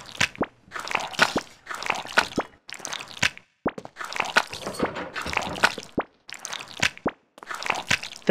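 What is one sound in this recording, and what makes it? A metal ladle scrapes and clinks against a food tray.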